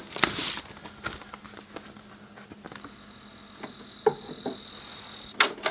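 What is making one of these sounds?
Small clicks and knocks sound as a turntable is handled.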